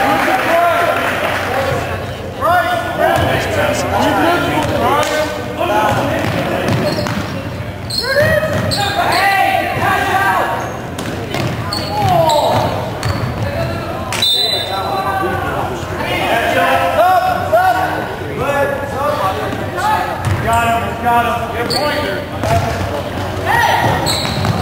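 Young players call out to each other in a large echoing gym.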